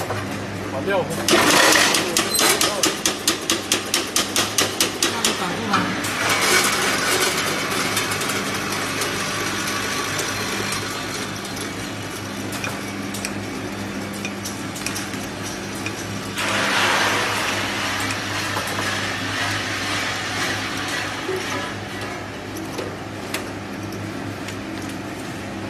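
A filling machine hums steadily.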